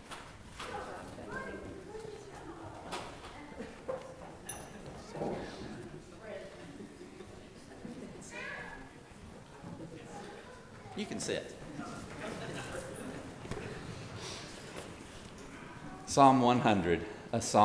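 People chat quietly in a large echoing hall.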